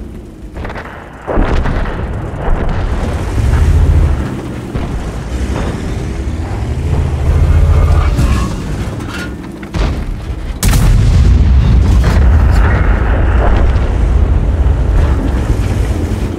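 A heavy tank engine rumbles and roars.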